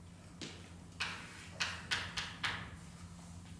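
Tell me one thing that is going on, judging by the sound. Chalk taps and scrapes sharply on a blackboard in an echoing room.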